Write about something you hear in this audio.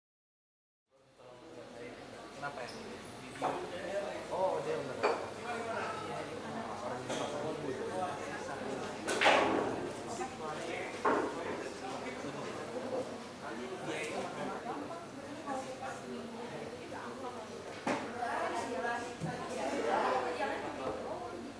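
Young men and women chat and laugh in a lively crowd nearby.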